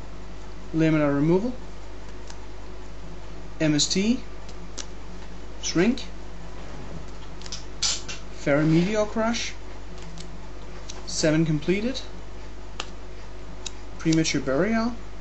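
Playing cards slide and tap as they are set down one after another.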